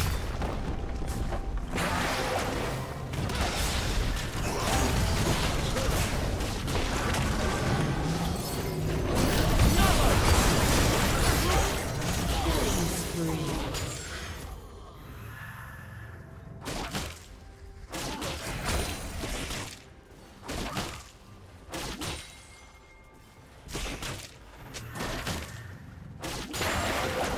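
Magic blasts and impacts crackle and boom in a busy fight.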